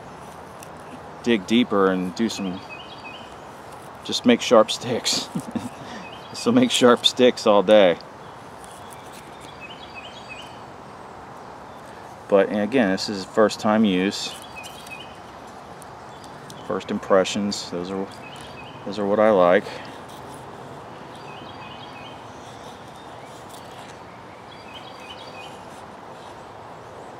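A knife blade scrapes and shaves thin curls off a stick of wood.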